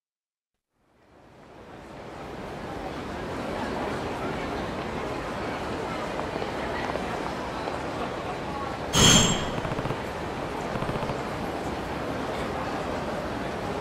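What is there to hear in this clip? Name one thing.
Crowd noise murmurs steadily on a busy night street.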